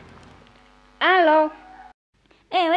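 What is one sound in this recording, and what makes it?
A young woman speaks into a mobile phone.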